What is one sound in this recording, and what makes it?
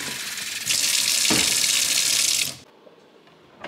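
Water runs from a tap in a strong stream.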